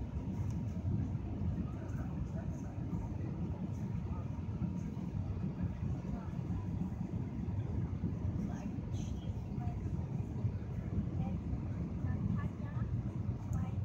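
Jet engines roar with a steady, deep rumble inside an airliner cabin.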